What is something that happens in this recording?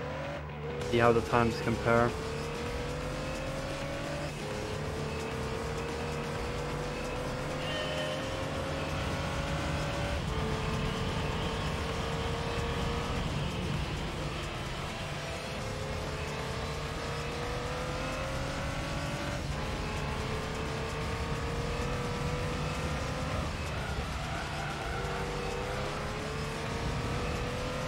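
A racing car engine revs up and drops as the car shifts gears.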